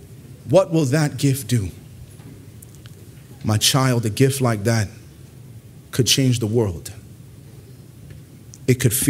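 A man preaches into a microphone in bursts, with pauses between phrases.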